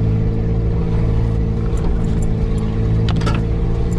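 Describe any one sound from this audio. Twigs and branches snap and scrape against the vehicle.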